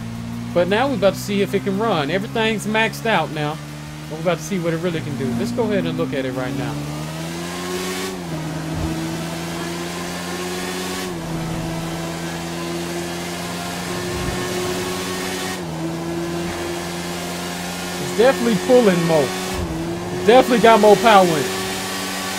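A motorcycle engine hums steadily and shifts pitch as it speeds up.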